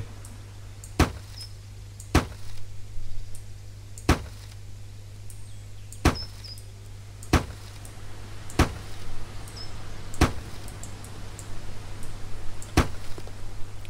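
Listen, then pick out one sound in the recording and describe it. A hammer knocks sharply on wooden boards, one blow every second or two.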